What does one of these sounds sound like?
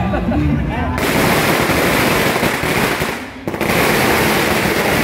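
A fire roars and crackles close by.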